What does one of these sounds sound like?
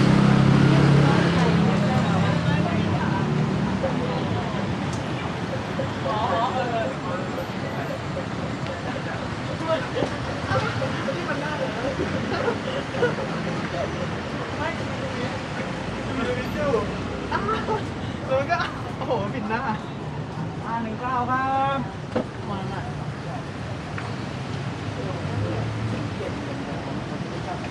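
Men and women talk in the background, outdoors on a busy street.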